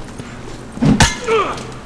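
A man grunts as he fights.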